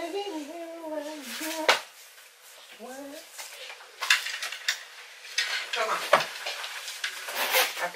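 Hangers clack in a wardrobe.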